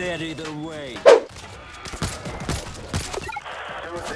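A rifle fires several sharp shots.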